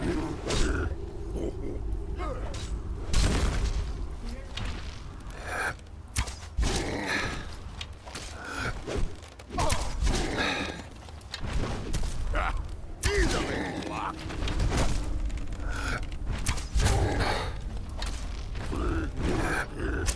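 Heavy blows thud and clash in a fight.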